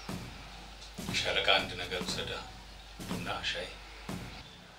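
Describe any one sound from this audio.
A man asks a question calmly, close by.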